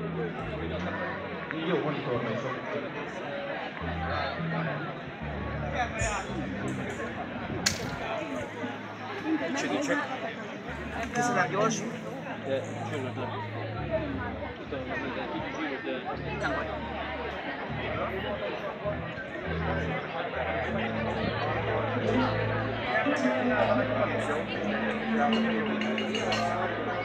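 A crowd of men and women chatters outdoors all around.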